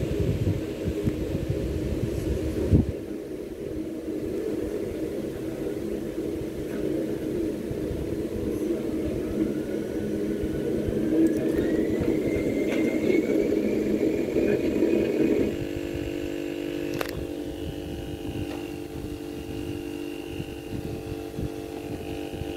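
A jet engine roars and whines as it speeds up, heard through small laptop speakers.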